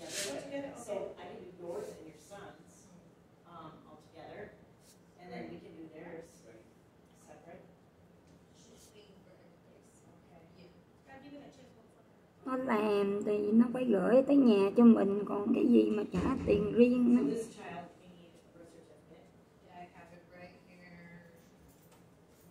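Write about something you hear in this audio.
A middle-aged woman speaks close to a microphone, now quietly, now loudly.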